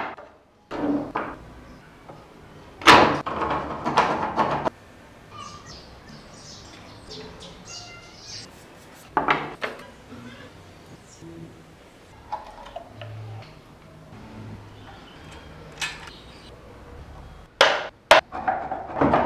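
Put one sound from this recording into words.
Wooden parts knock and click as they are fitted together.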